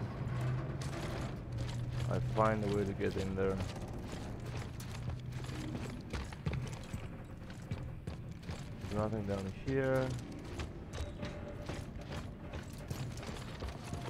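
Heavy footsteps crunch over debris.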